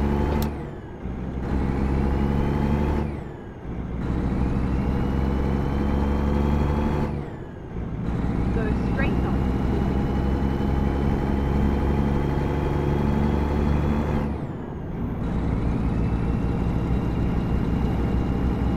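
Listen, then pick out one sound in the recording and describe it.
A truck engine drones steadily, rising in pitch and dropping back with each gear change.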